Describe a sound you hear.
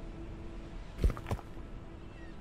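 A wooden workbench thuds into place with a short knock.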